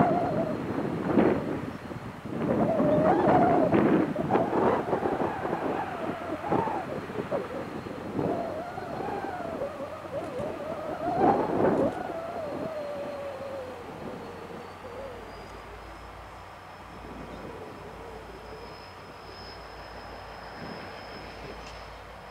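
A diesel locomotive's engine rumbles in the distance.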